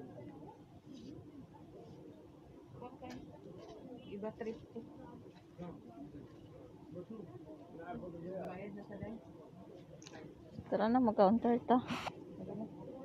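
Women talk in low voices nearby.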